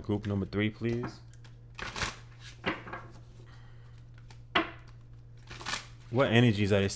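A small cardboard box rustles and taps as hands turn it over.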